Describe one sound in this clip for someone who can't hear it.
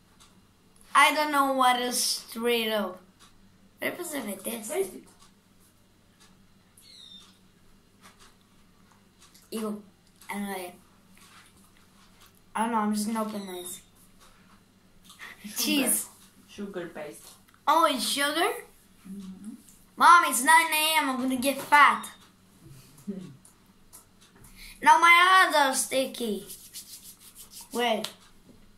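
A young boy talks with animation close by, in bursts.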